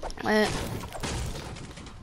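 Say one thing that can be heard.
A pickaxe strikes wood with a sharp thwack.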